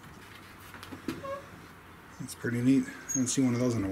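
A wooden door creaks as it swings on its hinges.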